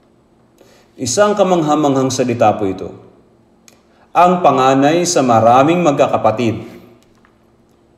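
An elderly man speaks calmly and slowly into a microphone, in a large echoing hall.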